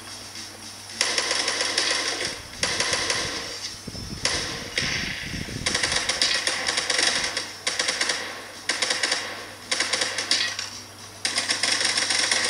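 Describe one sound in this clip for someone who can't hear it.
Rapid gunfire from a mobile game rattles in loud bursts.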